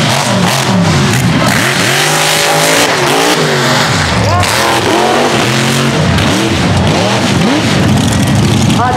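A loud off-road truck engine roars and revs up and down.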